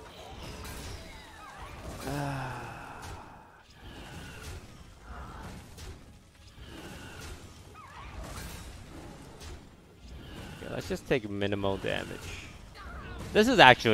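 Game sound effects of clashing blows and chimes ring out.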